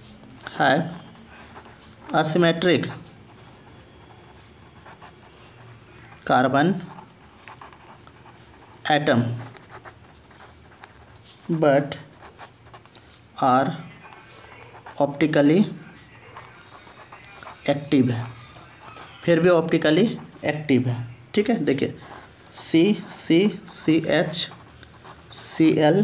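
A pen scratches across paper as it writes.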